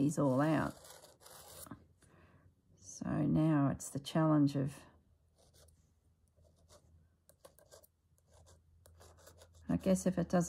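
A pen scratches lightly along paper.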